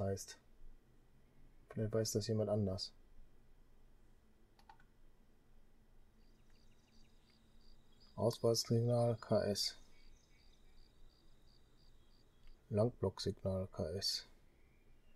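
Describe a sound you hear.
A middle-aged man speaks calmly into a close microphone, in short bursts.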